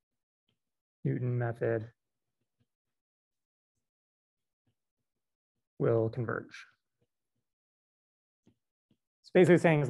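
A man speaks calmly into a microphone, lecturing in short phrases.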